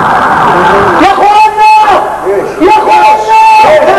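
A man sings loudly with long held notes in an echoing hall.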